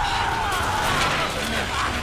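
A wounded man groans in pain.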